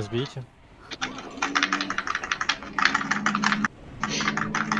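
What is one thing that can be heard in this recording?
Clicking and chiming game sound effects ring out in quick bursts.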